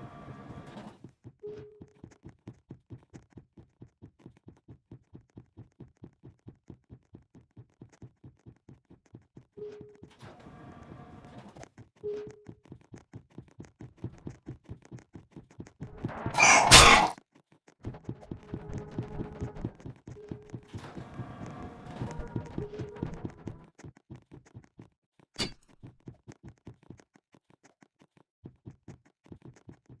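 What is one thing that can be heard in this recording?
Footsteps tap quickly and steadily on a hard floor.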